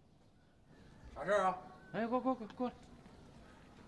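A man calls out loudly from a distance.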